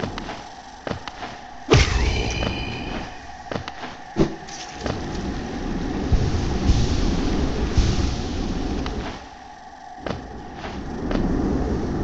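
Short game sound effects thump and click as a small figure jumps and lands.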